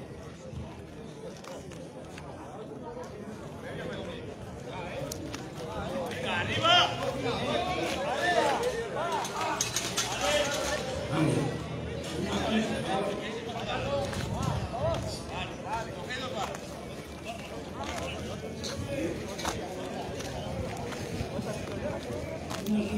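A crowd of men shout and cheer outdoors.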